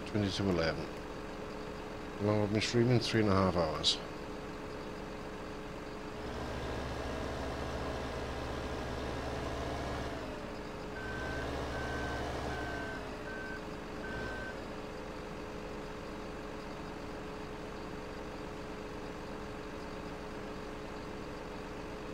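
A forestry machine's engine hums steadily.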